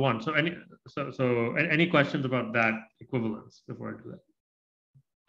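A man speaks calmly into a close microphone, as if lecturing.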